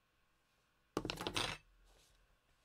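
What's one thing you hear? An ink pad is set down on a table with a soft knock.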